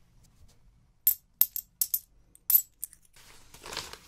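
Coins clink together close to a microphone.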